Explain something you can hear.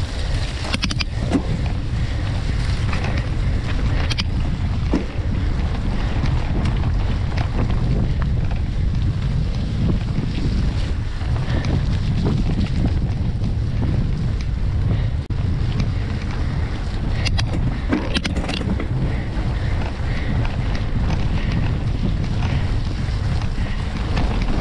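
Bicycle tyres crunch over a dirt trail.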